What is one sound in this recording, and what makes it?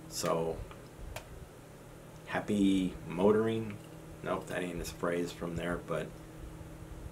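An elderly man speaks calmly and close to a microphone.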